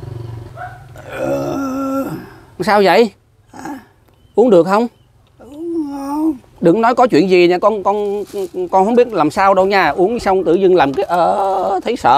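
An elderly man speaks close by, calmly and with animation.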